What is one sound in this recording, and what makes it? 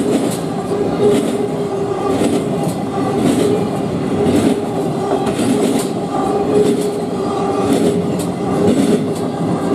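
A freight train rumbles steadily past.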